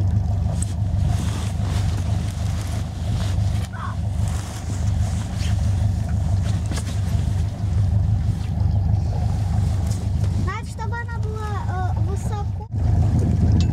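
A boat engine hums steadily close by.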